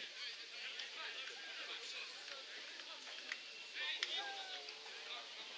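Young men shout to each other at a distance outdoors.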